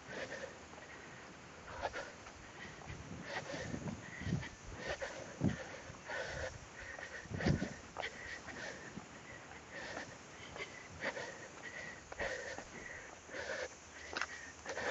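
Footsteps tread steadily on a stone path outdoors.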